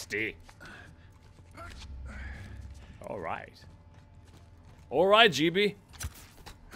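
A young man talks with animation, close to a headset microphone.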